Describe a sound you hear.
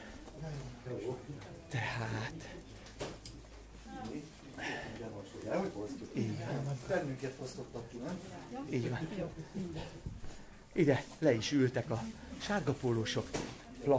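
A middle-aged man talks animatedly close to the microphone.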